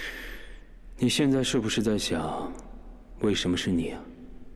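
A young man speaks close by.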